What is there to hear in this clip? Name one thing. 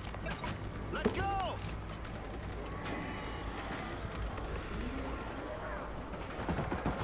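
Zombies snarl and growl close by.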